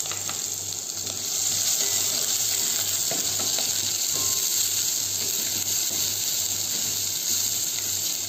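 A wooden spatula stirs vegetables in a metal pot.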